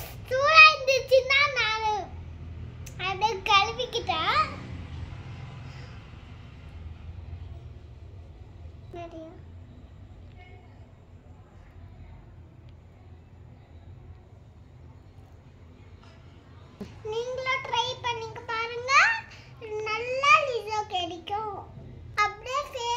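A young girl talks animatedly close by.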